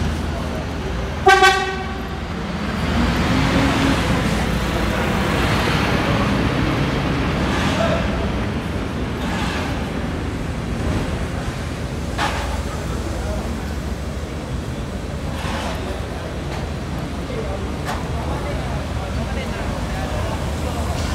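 A crowd of people chatter outdoors at a distance.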